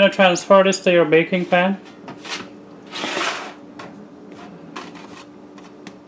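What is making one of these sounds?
Dough is set down on a metal baking tray with a soft thud.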